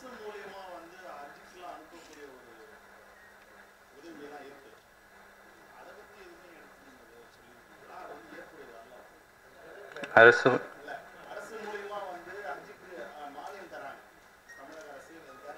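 A man speaks calmly into a microphone over a loudspeaker in an echoing hall.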